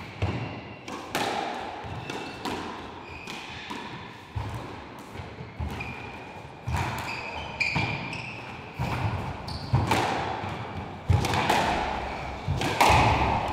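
A squash ball smacks hard against the walls and racquets, echoing around an enclosed court.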